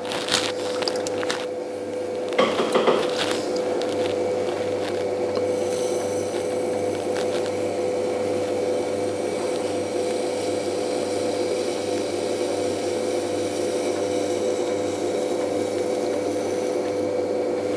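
Wet hands rub and squelch against spinning clay.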